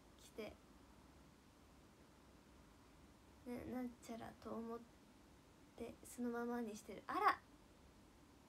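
A young woman speaks calmly and close by, in short bursts with pauses.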